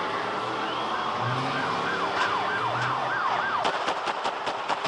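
A police siren wails.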